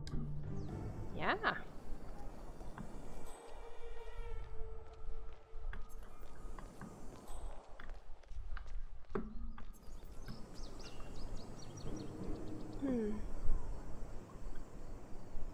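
Footsteps tap on a tiled courtyard.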